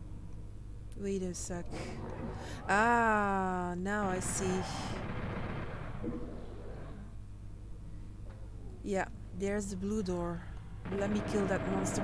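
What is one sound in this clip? A young woman talks into a close microphone with animation.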